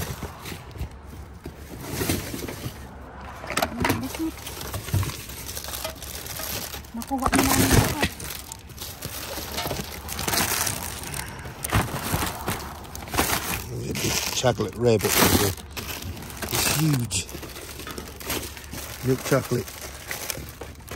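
Cardboard boxes and plastic-wrapped packages rustle and crinkle as hands rummage through them.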